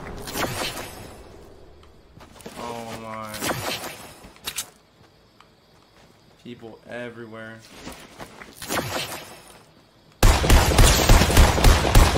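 Gunshots crack sharply from a video game.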